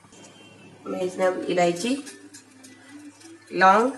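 Small spices drop into a metal pot with a light clink.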